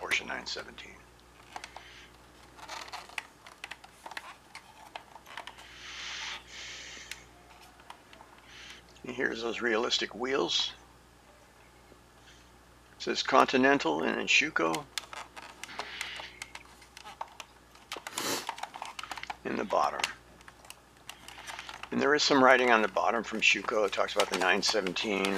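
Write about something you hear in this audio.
A plastic toy car clicks and taps softly as hands turn it over.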